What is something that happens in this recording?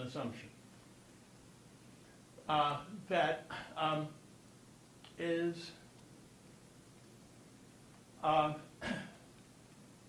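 An elderly man speaks calmly in short phrases with long pauses.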